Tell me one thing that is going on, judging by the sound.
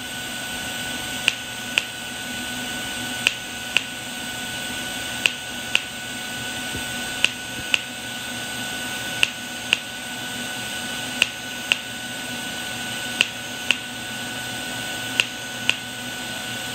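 A welding arc hisses and crackles steadily.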